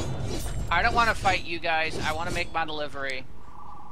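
Blows land in a fight.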